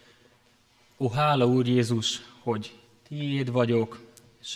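A young man speaks calmly through a microphone in an echoing room.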